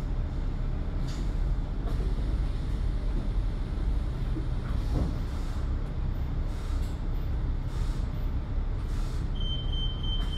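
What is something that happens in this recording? Buses and cars rumble steadily along a busy road.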